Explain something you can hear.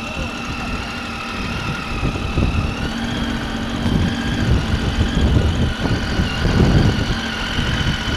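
Wind buffets and rumbles against a microphone.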